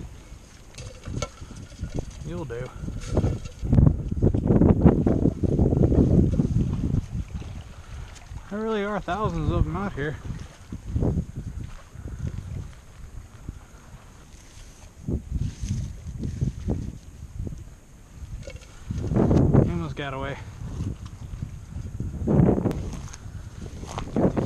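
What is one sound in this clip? Footsteps squelch and rustle through wet grass and mud.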